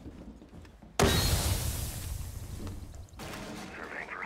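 A smoke grenade bursts with a loud hiss.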